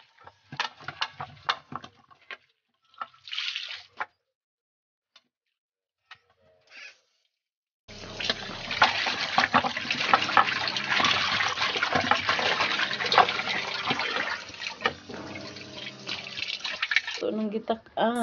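Water pours and splashes into a metal basin.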